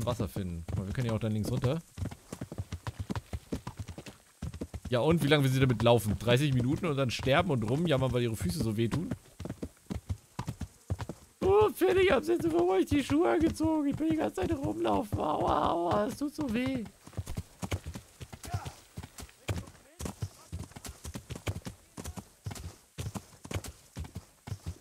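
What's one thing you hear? Hooves clop rapidly on a dirt track.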